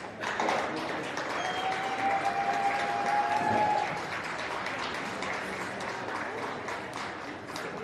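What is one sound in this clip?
A crowd murmurs and chatters in a large, echoing hall.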